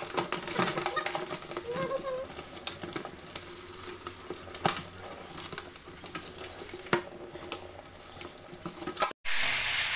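A brush scrubs crab shells.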